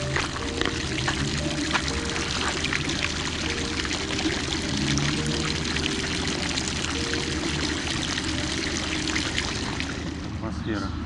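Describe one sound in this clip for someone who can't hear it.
Water splashes steadily from a fountain into a pool.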